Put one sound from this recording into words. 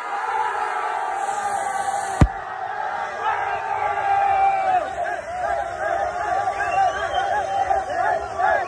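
Young men shout and cheer with excitement.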